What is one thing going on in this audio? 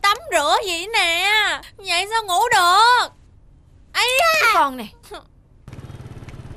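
A young woman wails and sobs loudly.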